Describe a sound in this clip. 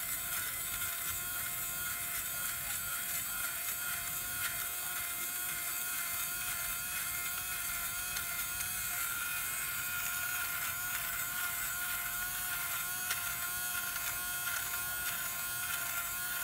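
A small fabric shaver whirs steadily with a high motor hum.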